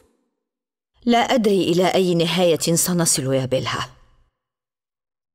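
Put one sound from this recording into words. A woman speaks in a pleading tone, close by.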